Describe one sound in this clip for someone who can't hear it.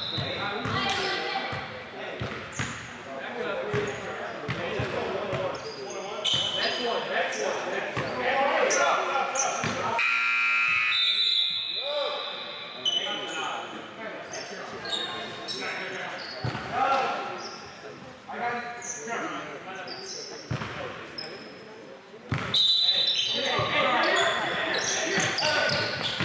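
Young men shout and call out to each other in a large echoing gym.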